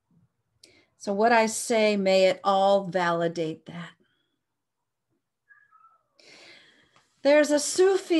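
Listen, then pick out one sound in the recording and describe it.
A woman speaks calmly and clearly close to a microphone, with pauses.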